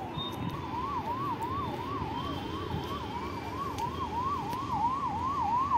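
Footsteps scuff on stone steps outdoors.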